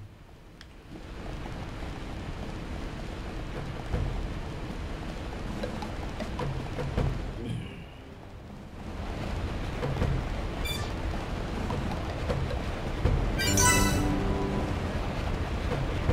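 Footsteps run on a hard metal floor.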